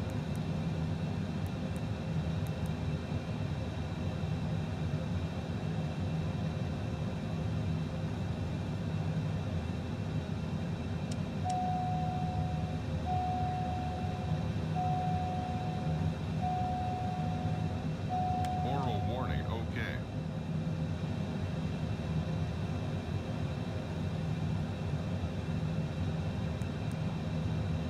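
A steady low hum of aircraft systems fills a cockpit.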